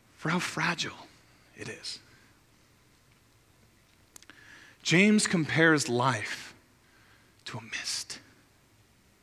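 A man speaks expressively into a microphone, pausing between phrases.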